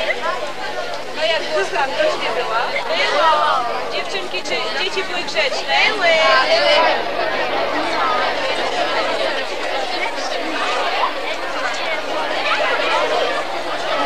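A man talks to a group of children.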